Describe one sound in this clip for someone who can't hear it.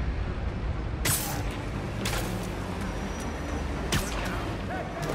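Web lines whoosh and snap during swings.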